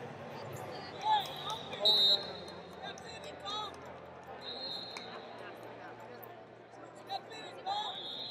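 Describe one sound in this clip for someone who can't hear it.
Shoes squeak sharply on a mat.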